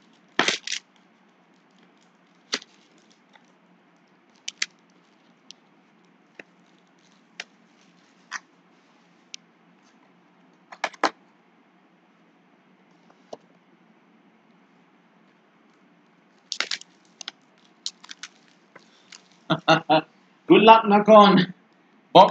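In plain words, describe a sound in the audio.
Card packs rustle and crinkle as hands handle them.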